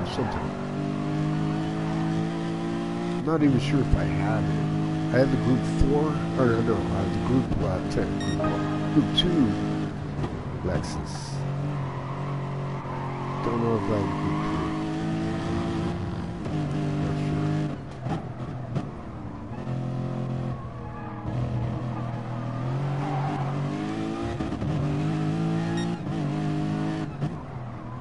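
Tyres squeal through corners.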